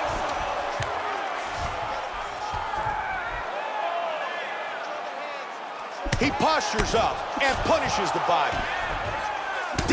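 Punches thud heavily against a body.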